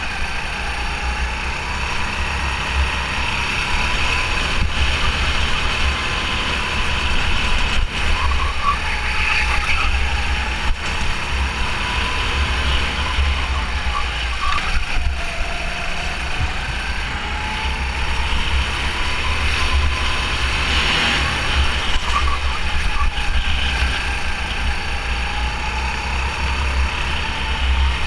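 Wind rumbles steadily past.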